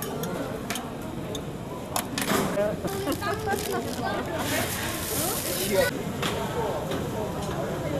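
A crowd chatters in a busy market.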